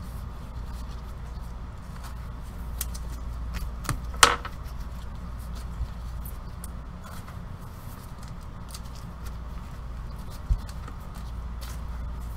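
Gloved hands handle and shuffle trading cards with soft rustling and clicking.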